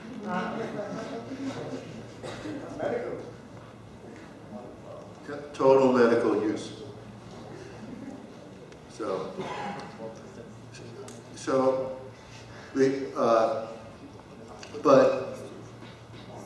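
A man speaks calmly into a microphone in an echoing hall, with pauses between phrases.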